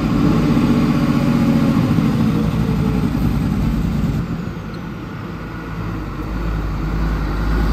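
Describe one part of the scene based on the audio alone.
A heavy truck engine rumbles as the truck slowly approaches.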